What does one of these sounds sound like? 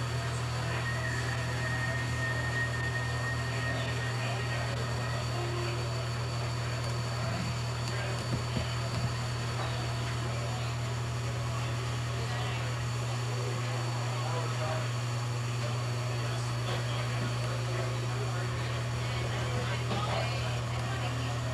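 A steam locomotive chugs slowly nearby.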